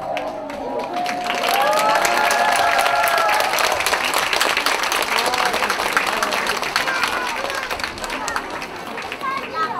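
An audience claps and cheers loudly.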